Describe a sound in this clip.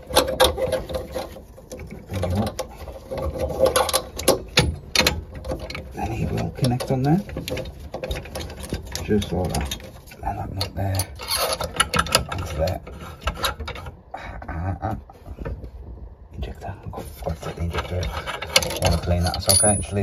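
Fingers tap and scrape against metal pipe fittings up close.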